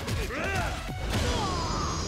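A punch lands with a heavy smack.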